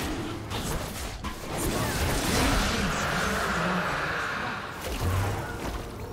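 Fantasy spell effects whoosh and crackle in a video game battle.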